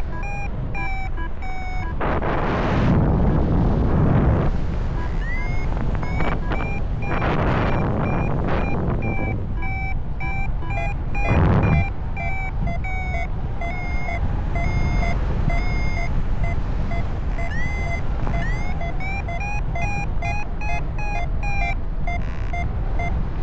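Wind rushes and buffets loudly past in open air, swelling in strong gusts.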